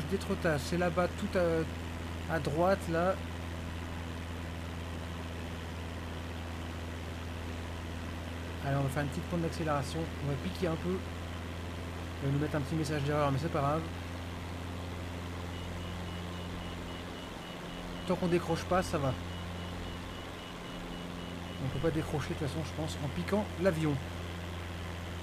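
A man talks calmly and closely into a microphone, in bursts with pauses.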